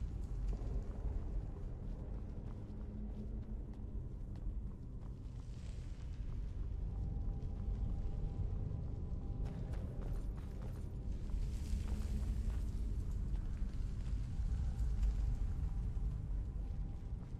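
Footsteps crunch on stone at a steady walking pace.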